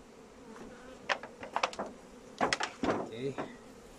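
A wooden beehive lid knocks as it is lifted and set down.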